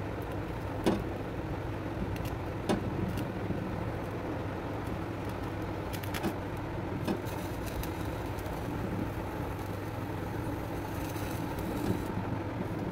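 Vegetable skin crackles and pops over the flame.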